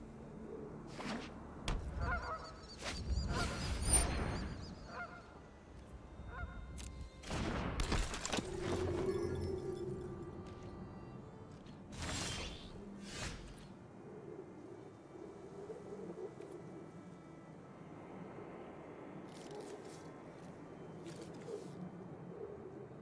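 Digital card game effects whoosh and chime as cards are played.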